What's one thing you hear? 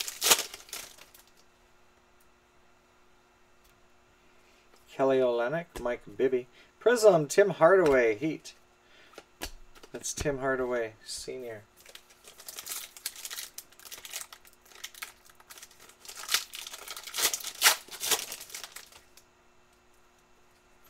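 Trading cards shuffle and tap together.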